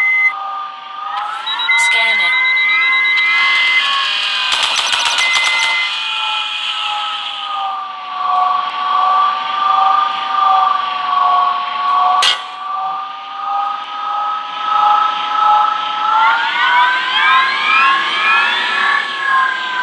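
Laser cannons fire in rapid zapping bursts.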